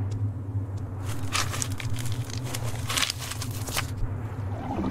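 Metal rattles and clanks as a car is searched.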